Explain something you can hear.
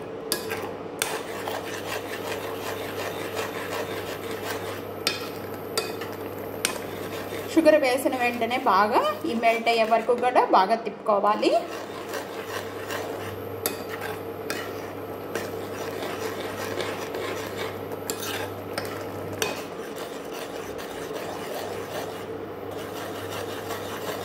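A metal spoon scrapes and clinks against a pot while stirring thick porridge.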